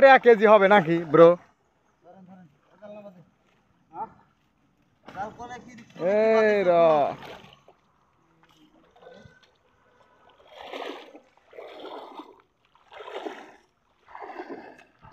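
Water splashes as men wade through a pond.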